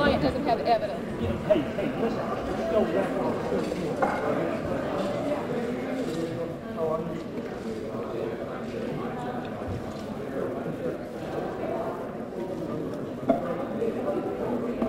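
A crowd of men and women chatter at once in a room.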